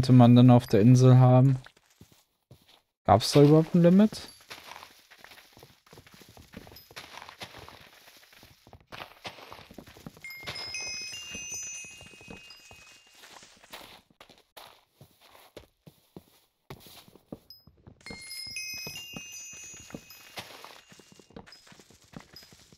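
Wooden blocks crack and break in quick, repeated chops.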